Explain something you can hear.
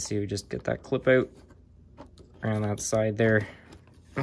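A small screwdriver scrapes faintly as it turns a screw.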